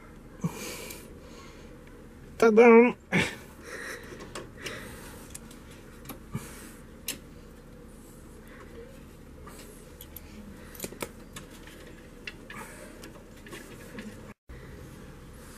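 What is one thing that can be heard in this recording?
Metal parts click and clink as hands work on a brake.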